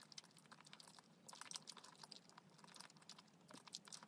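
A young woman slurps noodles loudly, close to the microphone.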